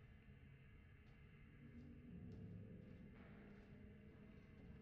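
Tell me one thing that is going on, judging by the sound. Footsteps thud softly on a hard floor.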